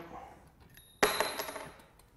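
A metal part cracks loose with a sharp snap.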